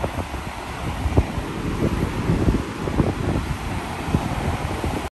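Waves rush and churn along the side of a moving ship.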